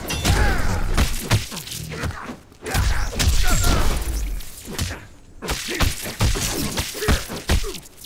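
Electric crackles and zaps burst out.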